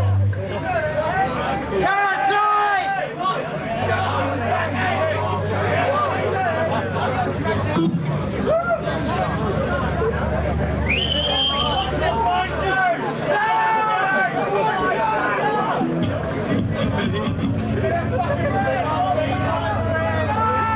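Cymbals crash and shimmer.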